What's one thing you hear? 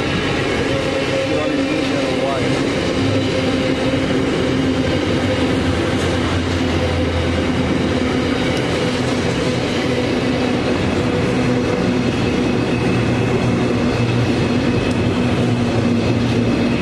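Steel wheels squeal and screech on the rails.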